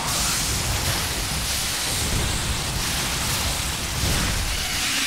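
Game units clash in battle with dense crackling and rumbling effects.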